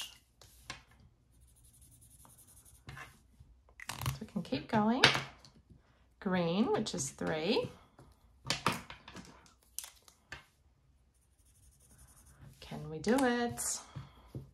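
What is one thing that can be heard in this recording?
A felt marker squeaks and scratches across card.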